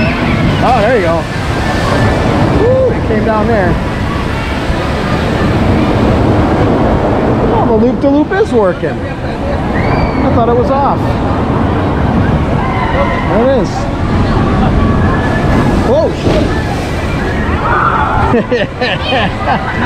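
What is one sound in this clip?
A crowd chatters and screams outdoors.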